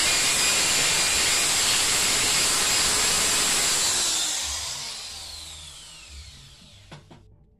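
A power drill whirs loudly into concrete, then winds down.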